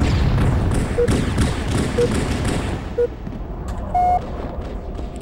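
Short electronic beeps count down once a second, then a longer, higher beep sounds.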